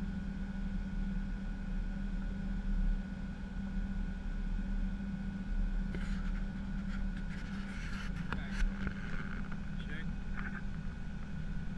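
Aircraft engines drone steadily with a low hum.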